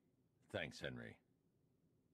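An elderly man speaks briefly.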